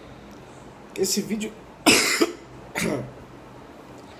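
A young man coughs hard several times close by.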